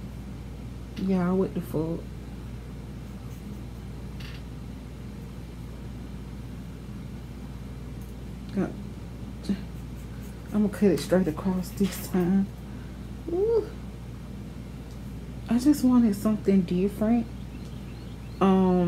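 A young woman talks calmly, close to a microphone.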